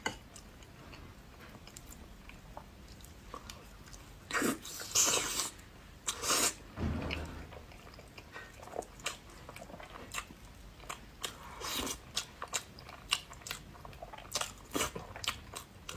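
A metal spoon clinks and scrapes against an egg shell.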